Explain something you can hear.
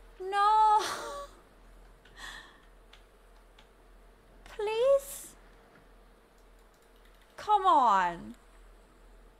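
A young woman exclaims with animation through a close microphone.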